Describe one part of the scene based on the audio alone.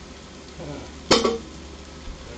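A lump of butter drops into a metal pot with a dull clunk.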